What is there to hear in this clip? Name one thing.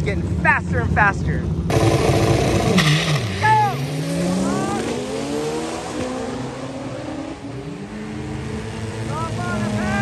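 Race car engines roar loudly, revving and rising in pitch as they accelerate away.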